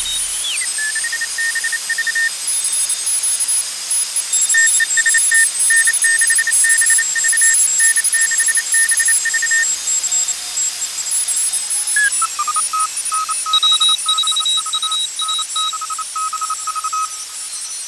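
A radio receiver hisses steadily.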